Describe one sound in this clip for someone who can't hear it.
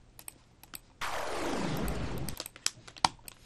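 A game sound effect whooshes as a card is played.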